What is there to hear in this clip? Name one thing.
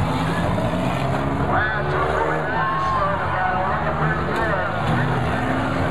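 A crowd cheers and shouts in the distance.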